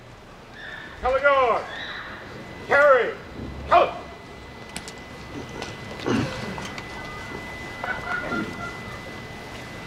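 A man speaks into a microphone through loudspeakers outdoors, with pauses.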